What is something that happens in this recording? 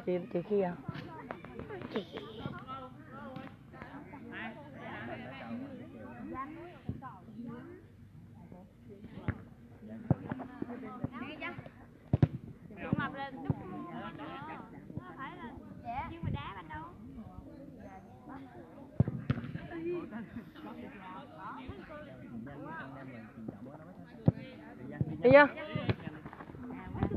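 Young girls chatter close by, outdoors.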